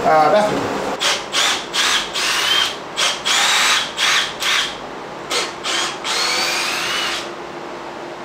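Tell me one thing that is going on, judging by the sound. A power drill whirs in short bursts.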